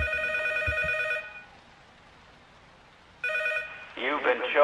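A telephone rings with a shrill electronic trill.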